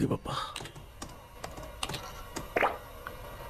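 A man taps keys on a laptop keyboard.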